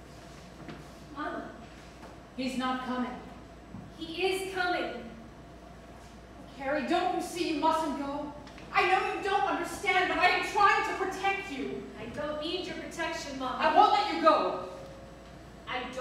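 A young woman speaks expressively.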